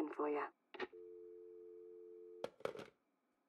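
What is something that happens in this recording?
A telephone dial tone hums steadily.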